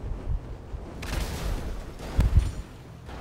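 A car crashes with a loud smash.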